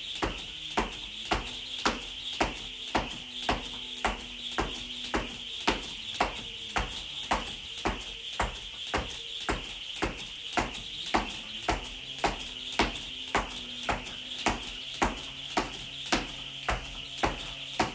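A skipping rope slaps a hard floor in a quick, steady rhythm.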